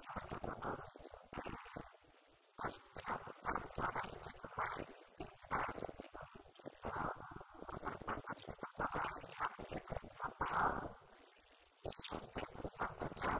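A young woman speaks steadily into a microphone, heard through a loudspeaker in an echoing room.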